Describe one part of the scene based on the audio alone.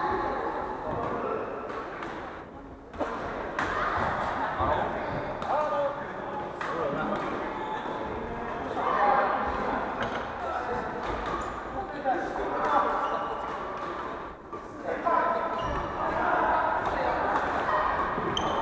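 Shuttlecocks are struck with rackets in sharp pops, echoing in a large hall.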